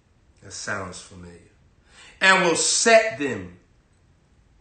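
A young man reads aloud close to a microphone.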